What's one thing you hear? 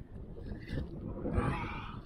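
A spinning reel winds in line.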